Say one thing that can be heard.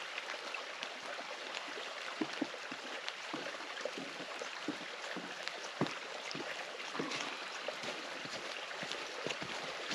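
Boots crunch on snow as a hiker walks closer.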